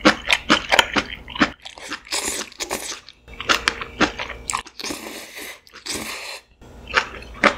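A young woman slurps noodles loudly, close by.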